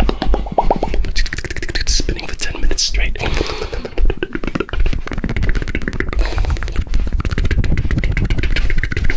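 A young man whispers very close to a microphone.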